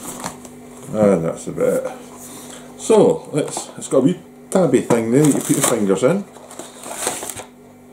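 A cardboard box rustles in a man's hands.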